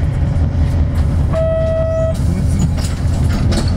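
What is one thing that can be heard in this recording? A truck drives past close by with a low rumble.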